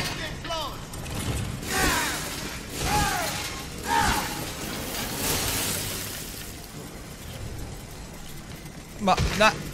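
A chainsaw roars.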